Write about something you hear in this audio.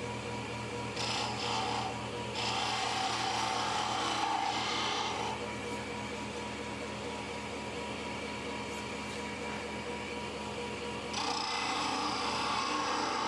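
A chisel scrapes against spinning wood in bursts.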